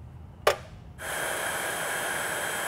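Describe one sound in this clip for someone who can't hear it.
Plastic pellets rattle as they pour into a metal cup.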